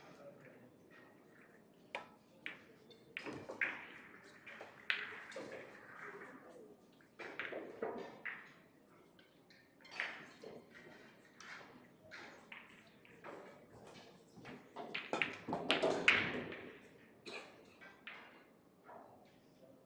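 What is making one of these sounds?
A cue strikes a pool ball, and the balls clack together.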